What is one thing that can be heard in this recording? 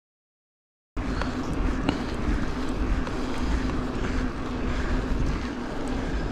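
Bicycle tyres roll over a paved lane.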